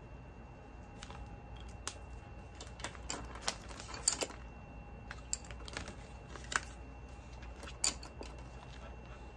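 Paper and plastic sheets rustle and crinkle as they are handled.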